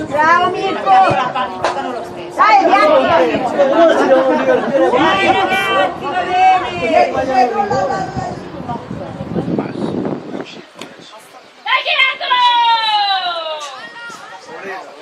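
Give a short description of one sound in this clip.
Young girls shout and call out loudly outdoors.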